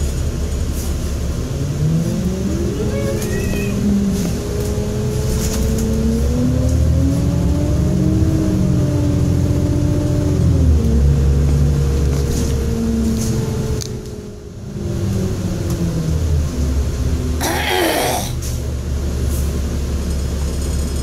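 A bus engine hums and whines, rising and falling in pitch as it drives.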